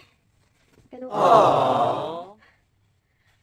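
A young woman groans loudly with strain.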